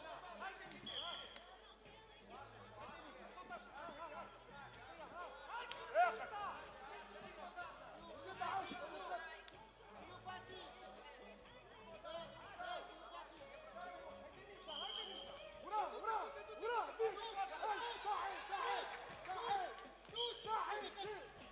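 A referee blows short whistle blasts.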